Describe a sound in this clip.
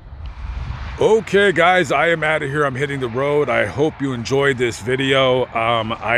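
A man talks close to the microphone, calmly and clearly.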